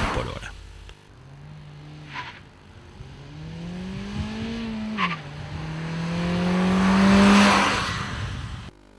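A car engine hums as the car approaches and rushes past.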